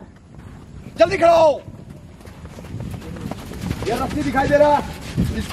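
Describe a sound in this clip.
A man shouts commands loudly outdoors.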